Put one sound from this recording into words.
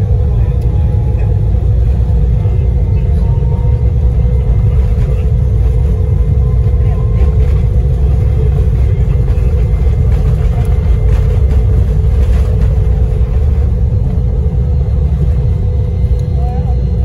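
Wheels rumble and thump on a runway, then fall quiet as the airliner lifts off.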